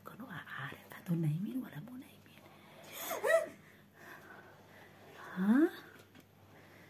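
Two young girls talk and laugh quietly nearby.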